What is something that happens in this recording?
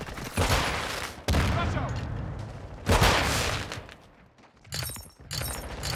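A rifle fires loud blasts that echo away.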